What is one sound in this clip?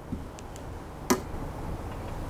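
A phone knocks down onto a metal scale.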